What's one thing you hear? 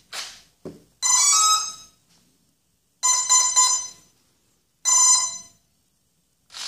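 An electronic speed controller gives a series of short high beeps.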